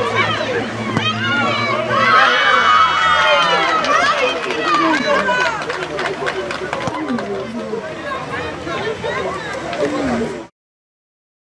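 Children shout and cheer excitedly outdoors.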